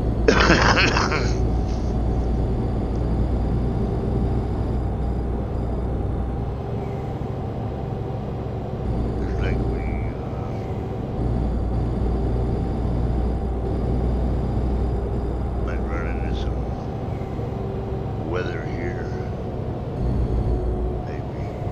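Tyres roll on the road with a low rumble.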